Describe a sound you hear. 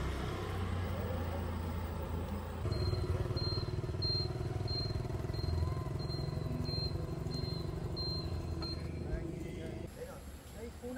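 A motorbike engine hums along a road.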